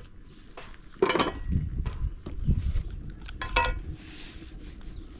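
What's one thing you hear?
Oil glugs as it is poured from a bottle.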